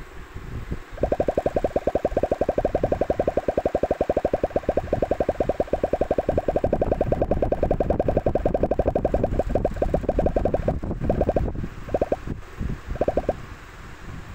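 Rapid game blips sound as balls bounce off blocks, quickly at first and then fewer.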